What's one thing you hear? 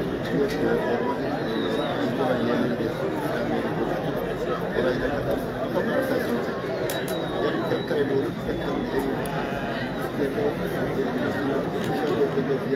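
A large outdoor crowd chatters and calls out steadily.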